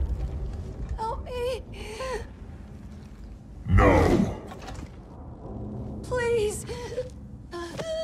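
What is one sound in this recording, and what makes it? A wounded man calls out weakly for help, close by.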